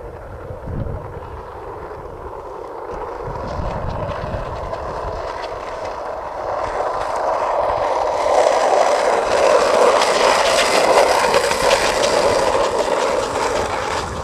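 Skateboard wheels roll and rumble over pavement.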